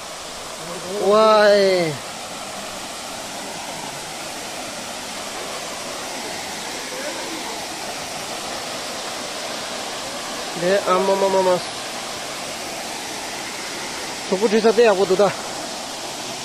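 Young men call out nearby outdoors.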